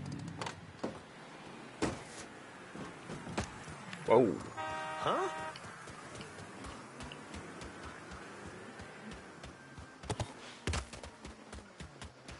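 Footsteps run on the ground.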